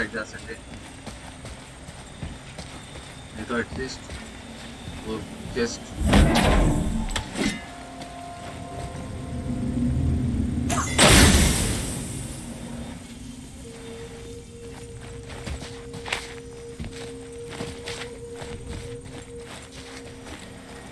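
Heavy footsteps thud on stone.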